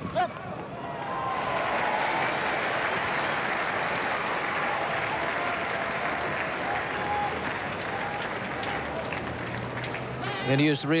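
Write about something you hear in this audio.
A crowd cheers and applauds, steady and far off.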